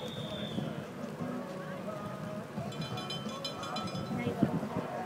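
A crowd of spectators shouts and cheers outdoors some way off.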